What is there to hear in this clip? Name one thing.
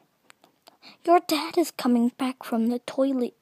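A young woman speaks softly in a high voice, very close to the microphone.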